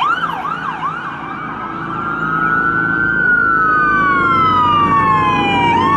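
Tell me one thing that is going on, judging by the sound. A police car siren wails as the car speeds past.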